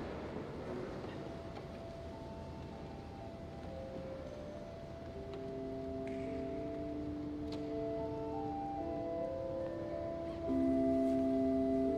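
An organ plays slow, sustained chords.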